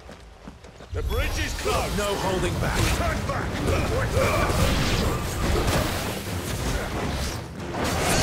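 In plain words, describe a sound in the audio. Fiery blasts roar and crackle.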